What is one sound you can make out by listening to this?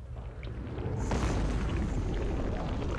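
A creature rumbles and roars loudly.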